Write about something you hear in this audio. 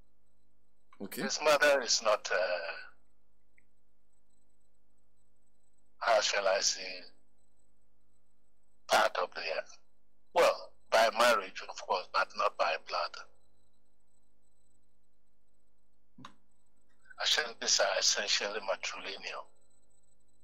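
A middle-aged man speaks calmly into a close microphone, in bursts with pauses.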